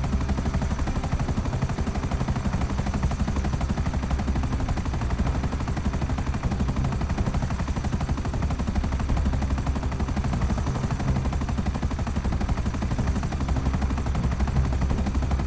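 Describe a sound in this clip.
A helicopter's engine whines steadily.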